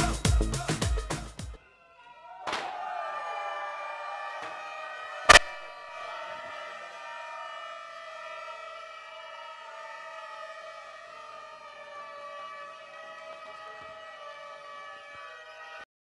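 Lively folk music plays loudly over loudspeakers.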